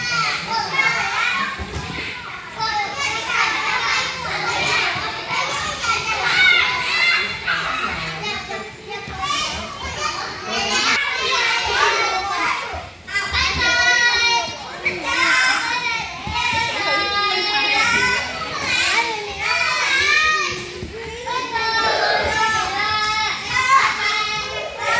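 Young children shout and squeal excitedly nearby in an echoing indoor hall.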